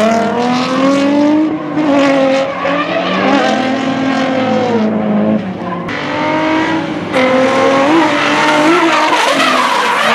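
Car engines rev hard and roar, rising and falling in pitch.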